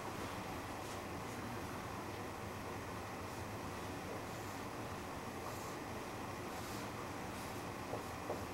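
A marker squeaks and scrapes across a whiteboard.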